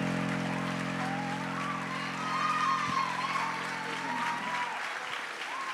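A piano plays a held chord that fades away.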